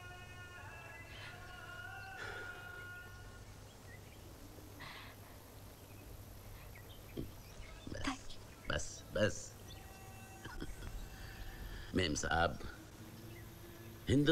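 A woman sobs and cries softly up close.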